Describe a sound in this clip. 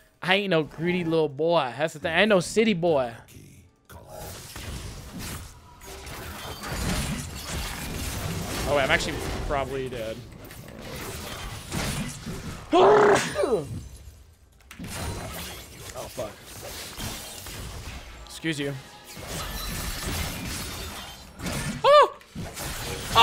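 A young man talks excitedly into a close microphone.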